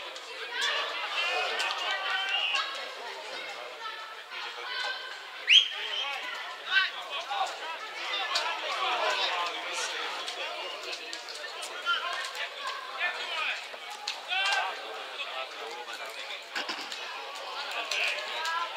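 Players shout to each other across an open field, heard from a distance.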